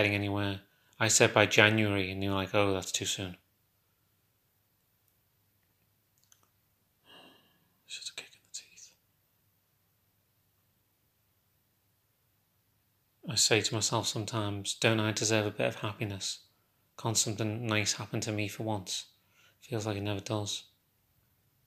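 A young man talks calmly and close to a phone microphone, with pauses.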